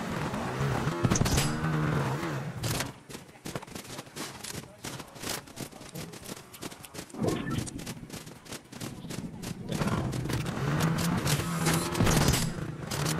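A motorbike engine revs and roars.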